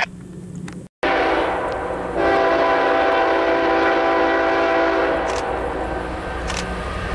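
A freight locomotive rumbles as it approaches.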